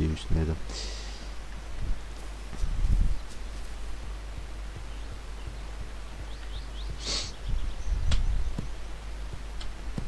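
A young man talks calmly into a microphone, in short bursts.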